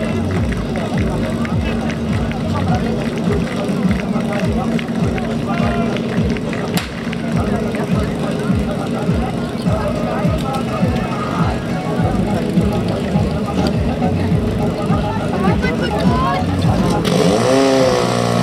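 A pump engine roars steadily.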